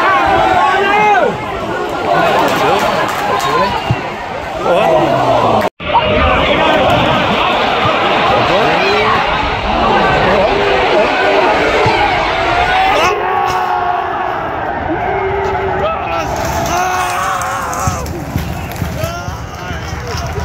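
A large crowd cheers and shouts in an open stadium.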